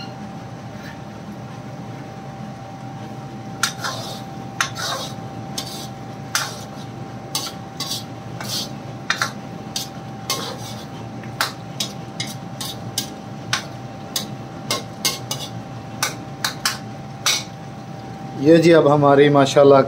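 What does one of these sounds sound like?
A thick curry bubbles and simmers in a wok.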